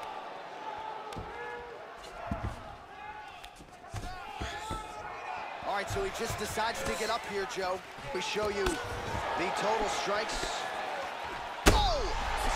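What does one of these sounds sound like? A crowd murmurs and cheers in a large arena.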